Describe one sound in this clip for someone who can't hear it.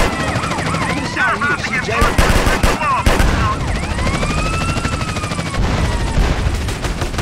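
Police sirens wail and rise and fall in pitch.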